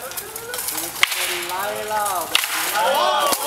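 Wooden staffs clack together sharply.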